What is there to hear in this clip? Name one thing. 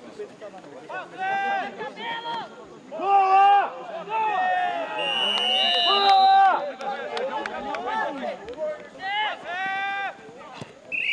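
Players shout loudly across an open field.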